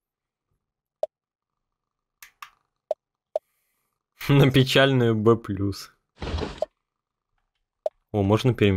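Short soft menu blips sound now and then.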